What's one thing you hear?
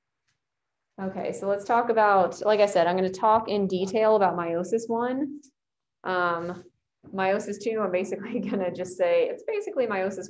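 A woman lectures calmly through an online call.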